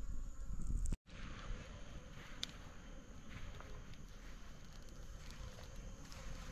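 A small wood campfire crackles.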